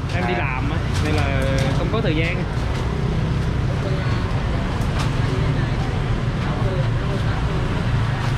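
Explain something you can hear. A crowd chatters loudly outdoors.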